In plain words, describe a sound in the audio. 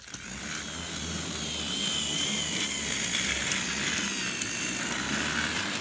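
Toy train wheels click over the rail joints.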